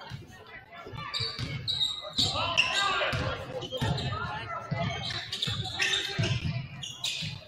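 A crowd in an echoing gym cheers and chatters, growing louder.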